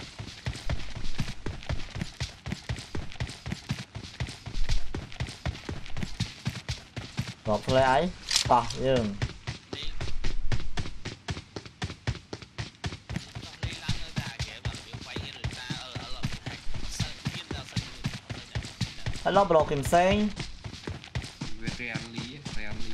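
Footsteps thud quickly and steadily on the ground.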